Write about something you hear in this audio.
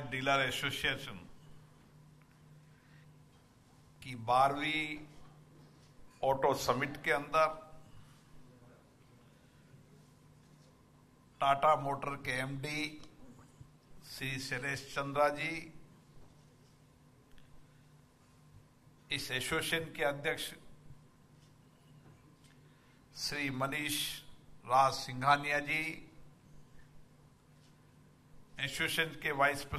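A middle-aged man speaks slowly into a microphone, with long pauses, heard through loudspeakers.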